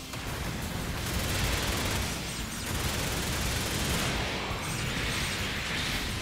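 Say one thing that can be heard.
Rapid gunfire and explosions crackle in a video game.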